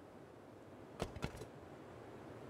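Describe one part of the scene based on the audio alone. A game inventory menu opens with quick clicks.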